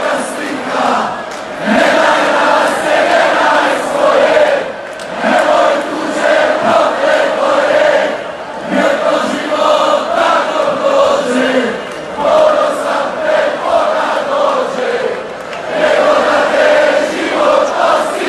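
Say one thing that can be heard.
A huge outdoor crowd sings and chants loudly together.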